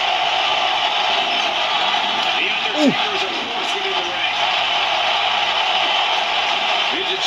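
A crowd cheers steadily through a television speaker.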